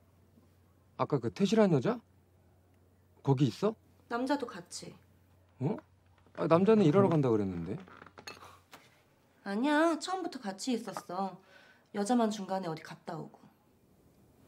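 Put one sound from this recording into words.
A young woman talks on a phone with surprise and urgency.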